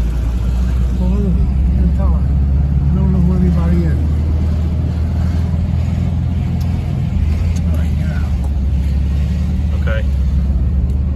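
An older man speaks casually nearby.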